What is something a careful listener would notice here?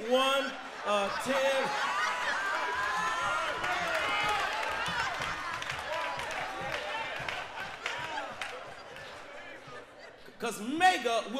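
A large crowd cheers and calls out.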